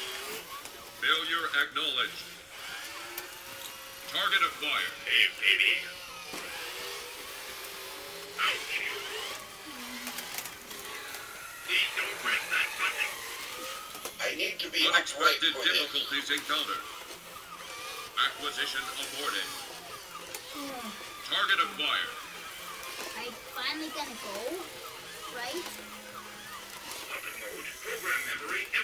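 Toy robots make bursts of electronic beeping and chattering sounds.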